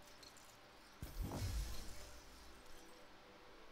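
A bright electronic whoosh swells and fades.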